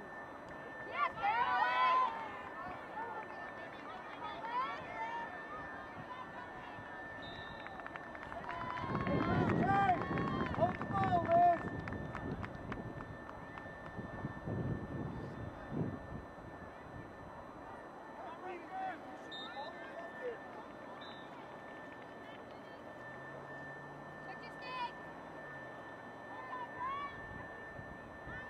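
Young girls shout and call out across an open field.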